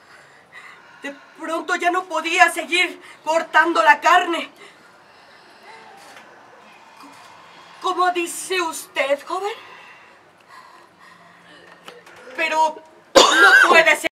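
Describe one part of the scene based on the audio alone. A young woman sings loudly nearby, in short phrases with pauses.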